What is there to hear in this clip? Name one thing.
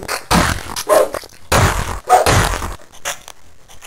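A heavy mace swings and strikes a creature with a thud.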